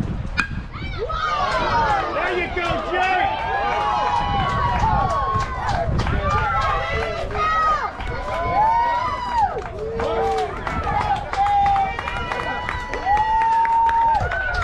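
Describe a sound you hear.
Girls shout and cheer excitedly nearby.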